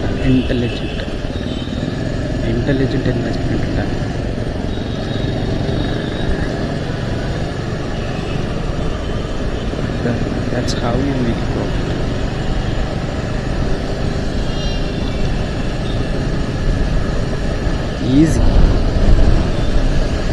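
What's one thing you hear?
Traffic drives by on a busy road.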